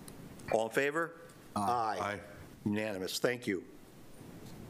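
A man speaks briefly through a microphone in a quiet room.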